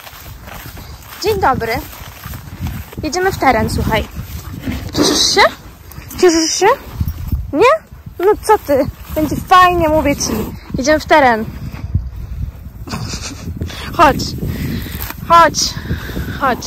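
A horse tears and munches grass close by.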